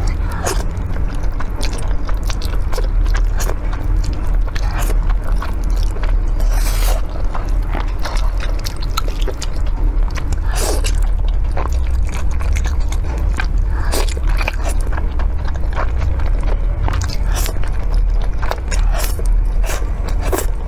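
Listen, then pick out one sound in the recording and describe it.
A young woman chews noodles with soft, wet, smacking sounds, close up.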